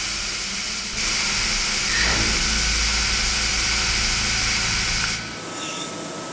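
Coolant sprays hard inside a machine enclosure with a loud hiss.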